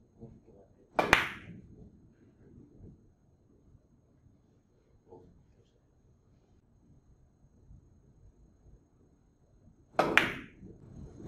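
A cue stick strikes a billiard ball with a sharp click.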